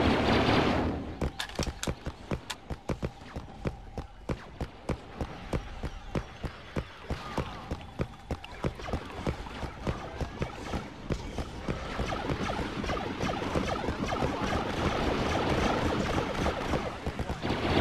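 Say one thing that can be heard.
Armored footsteps thud quickly and steadily on stone.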